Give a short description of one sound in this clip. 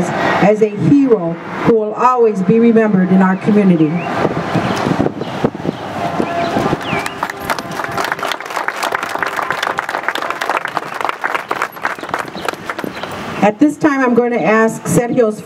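A woman speaks with emotion into a microphone, heard through loudspeakers outdoors.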